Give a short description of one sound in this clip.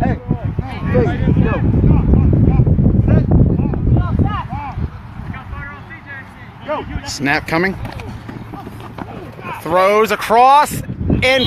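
Several young men shout and call out outdoors.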